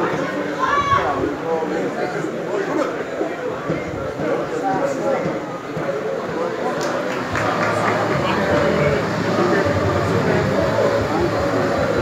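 Men talk and call out nearby in an open-air stand.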